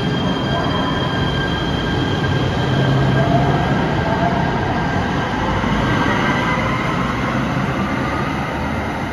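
A train's electric motors whine and rise in pitch as it pulls away.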